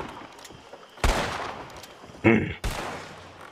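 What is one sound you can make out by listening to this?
Gunshots ring out and echo loudly outdoors.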